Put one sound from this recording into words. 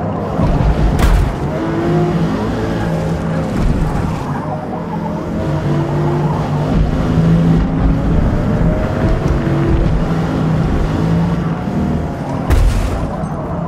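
A car bumps against another car with a sharp knock.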